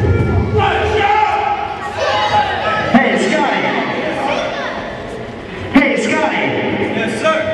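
A man shouts into a microphone over loudspeakers in a large echoing hall.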